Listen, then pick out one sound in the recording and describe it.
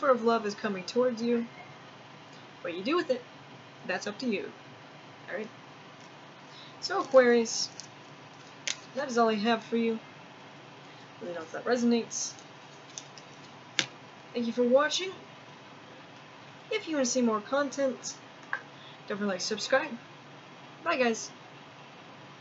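A young woman speaks calmly in short phrases close to a microphone.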